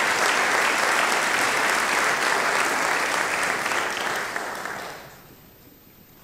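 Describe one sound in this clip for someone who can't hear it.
An audience applauds loudly in a large hall, then stops.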